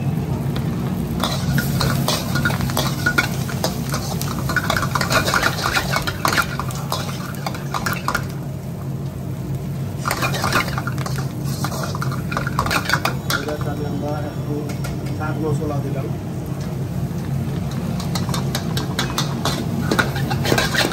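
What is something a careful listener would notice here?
A metal spatula scrapes and clanks against a wok.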